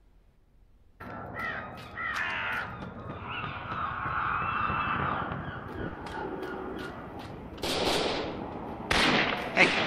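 Footsteps run quickly over wooden stairs and gravel.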